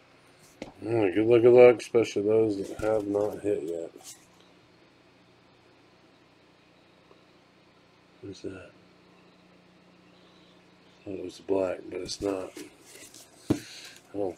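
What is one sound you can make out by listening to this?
Trading cards rustle and slide against each other as they are shuffled by hand.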